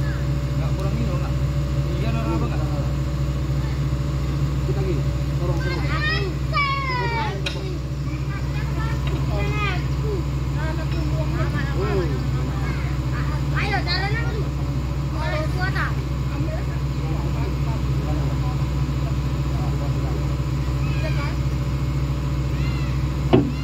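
An excavator engine idles with a steady low rumble.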